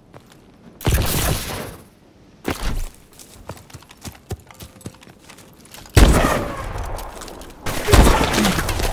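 Loud gunshots crack in short bursts.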